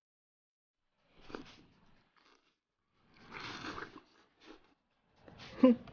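A young man slurps and chews food close by.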